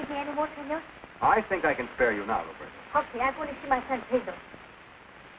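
A young boy speaks quickly and with excitement.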